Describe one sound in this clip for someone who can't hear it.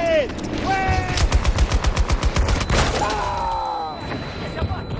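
A light machine gun fires rapid bursts.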